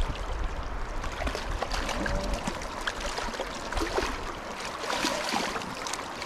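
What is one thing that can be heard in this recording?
A hooked fish splashes and thrashes at the water's surface.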